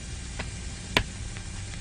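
A light switch clicks.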